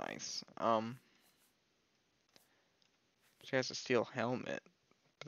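A soft menu click sounds as a selection changes.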